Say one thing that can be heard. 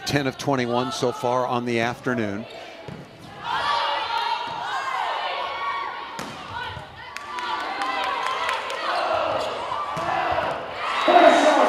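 A crowd cheers and claps in a large echoing gym.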